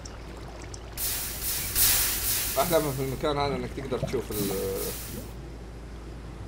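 Water gushes and splashes as it pours out.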